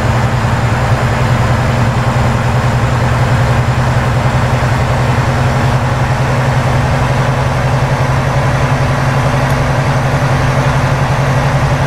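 A truck engine drones steadily at cruising speed.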